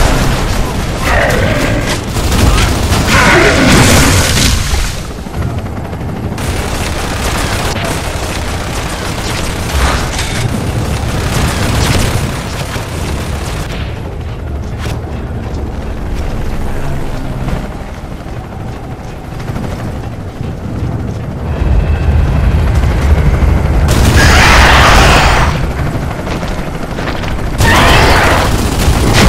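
A rifle fires rapid bursts of gunfire.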